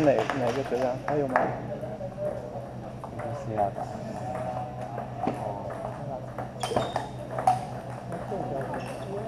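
Children talk nearby in an echoing hall.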